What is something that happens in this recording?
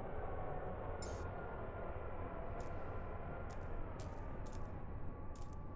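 Short electronic menu clicks sound several times.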